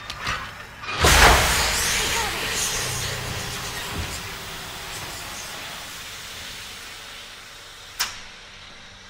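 Pressurised steam bursts out with a loud hiss and slowly fades.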